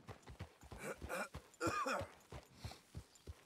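A man talks through a headset microphone.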